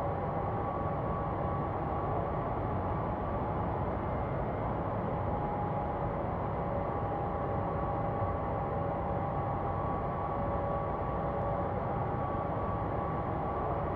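Jet engines roar steadily with a constant whine.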